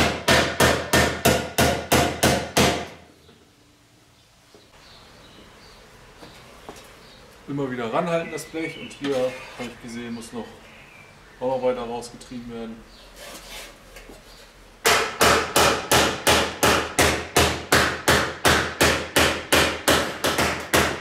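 A rubber mallet beats rapidly on a thin metal sheet.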